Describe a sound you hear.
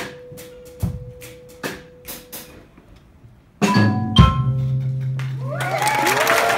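A small ensemble plays a few sharp, sparse notes on strings and percussion.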